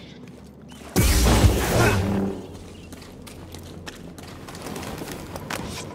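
A lightsaber hums and swooshes through the air.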